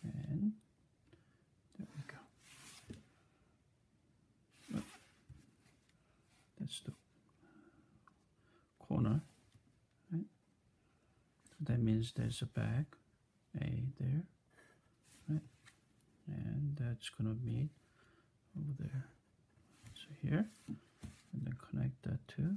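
A plastic ruler slides and taps on paper.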